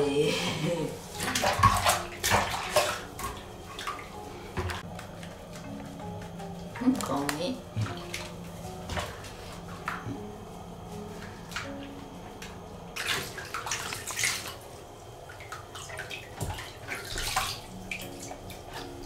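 Water splashes in a small basin.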